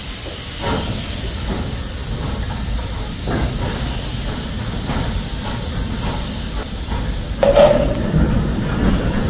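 Heavy wheels rumble and clank on rails.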